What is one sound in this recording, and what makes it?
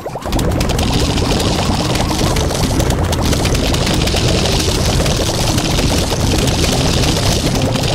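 Cartoon plants fire rapid popping shots in a video game.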